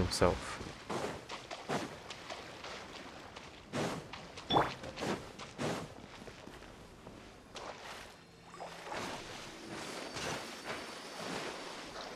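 Sword swings and magic blasts whoosh and crack in a video game.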